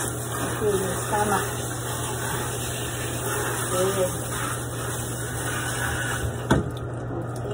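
Running water splashes into a tub.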